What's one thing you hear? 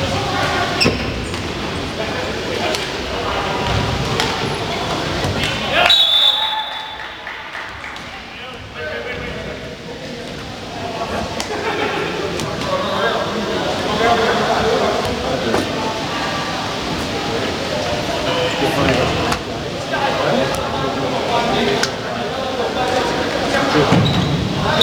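Many young men and women shout and call out across a large echoing hall.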